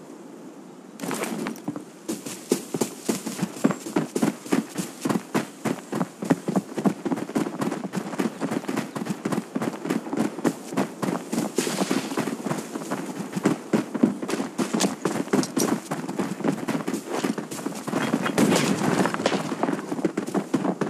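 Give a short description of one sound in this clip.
Footsteps run quickly and steadily over dirt and gravel.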